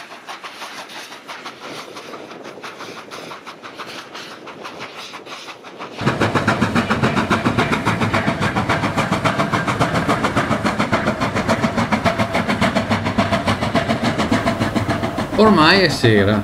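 A steam locomotive chuffs rapidly and steadily.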